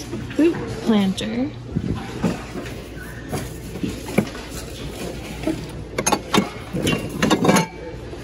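Glassware clinks as it is moved around.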